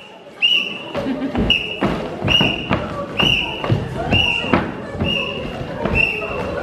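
A marching band's drums beat a steady rhythm.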